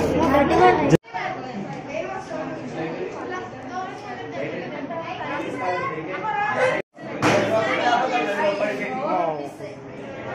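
A crowd of children and young women chatter and talk nearby.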